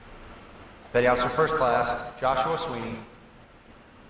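A man's voice announces through a loudspeaker in a large echoing hall.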